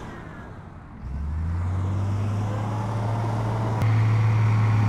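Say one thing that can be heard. A heavy engine revs up and roars louder.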